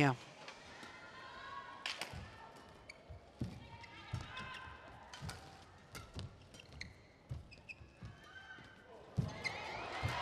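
Rackets strike a shuttlecock back and forth in a rally.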